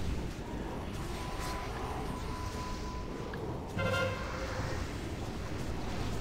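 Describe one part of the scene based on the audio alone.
Spell effects whoosh, crackle and chime in a busy battle.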